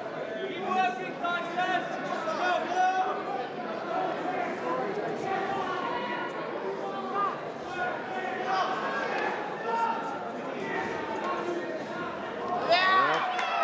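A crowd of spectators murmurs and chatters in a large hall.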